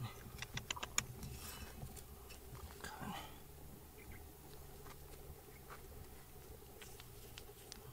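Fingers crumble and rub loose dirt.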